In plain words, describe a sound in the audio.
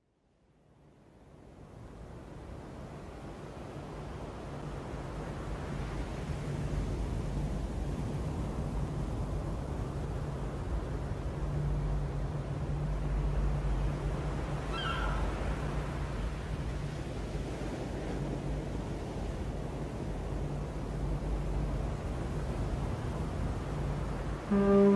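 A strong wind roars over the open sea.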